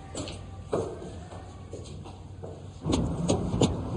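Footsteps climb a stone staircase.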